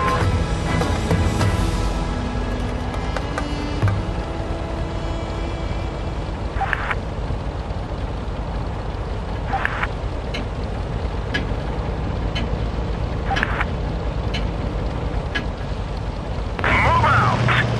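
A tank engine idles with a low, steady rumble.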